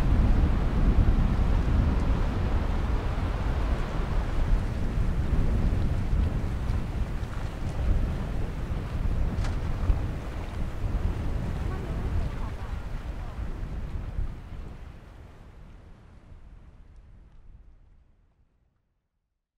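Wind blows steadily into a microphone outdoors and fades away at the end.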